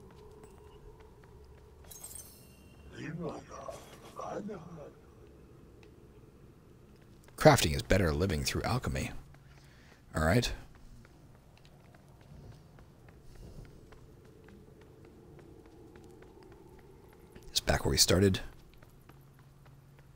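Light footsteps patter on a stone floor.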